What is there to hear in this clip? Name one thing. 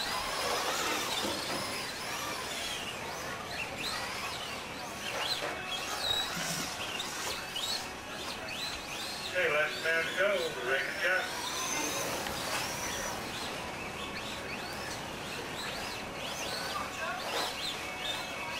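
Plastic tyres crunch over loose dirt.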